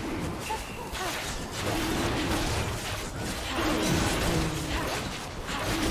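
Video game spells whoosh and crackle during a fight.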